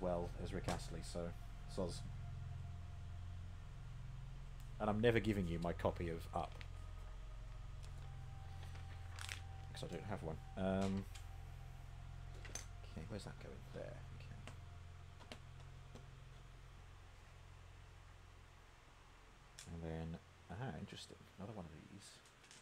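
Small plastic bricks clatter and click.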